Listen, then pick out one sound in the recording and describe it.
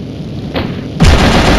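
A gun fires loudly.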